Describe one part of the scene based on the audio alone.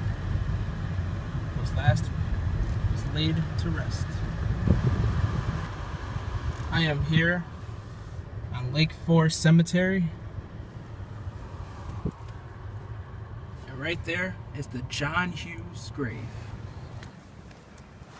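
A car drives along with a low road rumble.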